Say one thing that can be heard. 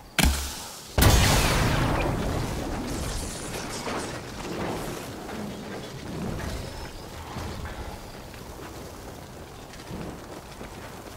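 Fire crackles and hisses.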